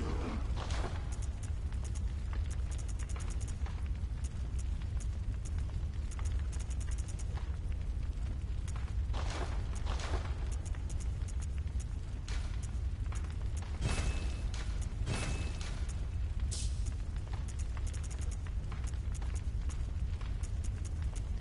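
Soft menu clicks tick quickly as a cursor moves through a list.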